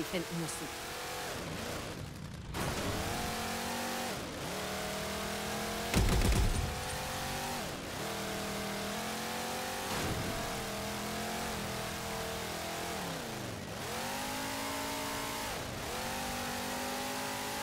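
A vehicle engine hums and revs up and down repeatedly.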